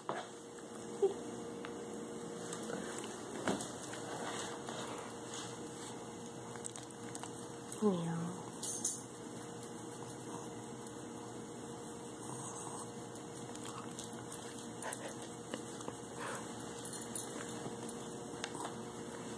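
A small dog's claws tap on a hard floor.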